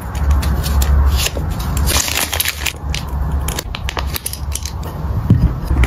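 Plastic sleeves crinkle as they are handled.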